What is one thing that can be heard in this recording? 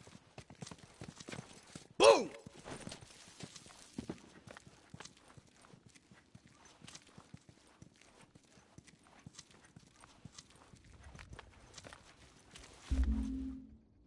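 Footsteps patter quickly across a hard floor.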